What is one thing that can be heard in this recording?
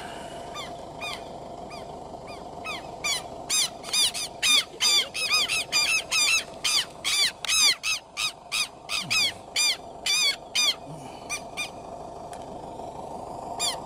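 A chick peeps rapidly and shrilly up close.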